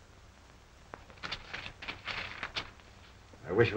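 Papers rustle as a man handles them.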